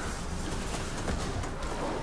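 Energy weapons fire in sharp bursts.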